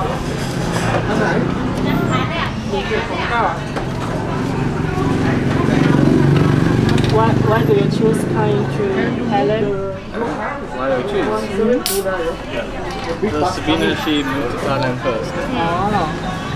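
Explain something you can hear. A young man talks and laughs close by, heard through a clip-on microphone.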